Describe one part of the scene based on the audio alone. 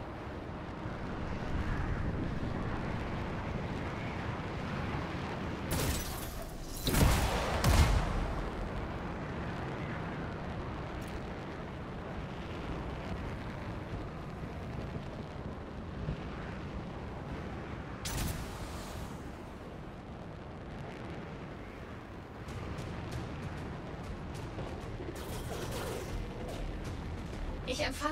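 Jet thrusters roar as an armored suit flies.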